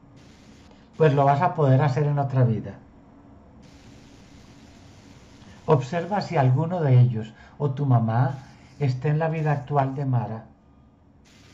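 A middle-aged man speaks calmly over an online call, in short bursts.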